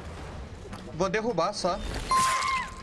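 A young man speaks into a close microphone with animation.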